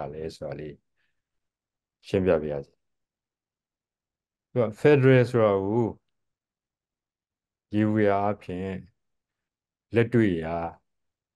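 An elderly man speaks calmly in short phrases over an online call, with pauses between them.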